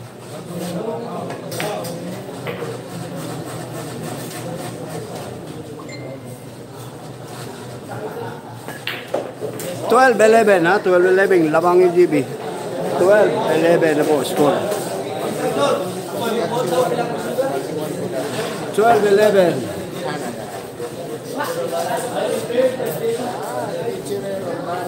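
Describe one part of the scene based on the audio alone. A crowd of spectators murmurs and chatters.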